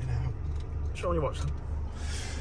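A man chuckles softly nearby.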